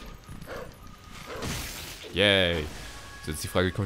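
A sword swishes through the air with a ringing hum.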